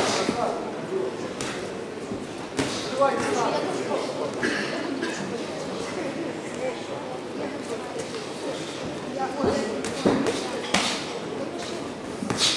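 A crowd murmurs and cheers in a large echoing hall.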